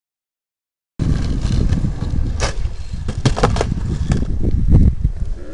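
A skateboard rolls over rough concrete.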